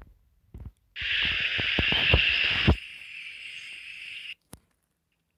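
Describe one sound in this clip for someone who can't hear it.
Water rushes and splashes steadily, then quiets.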